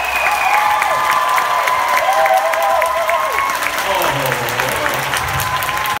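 An orchestra plays in a large echoing hall.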